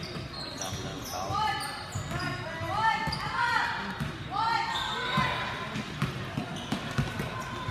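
A crowd cheers and calls out in a large echoing gym.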